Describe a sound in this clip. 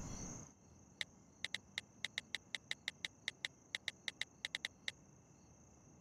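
A phone's keys click in quick taps.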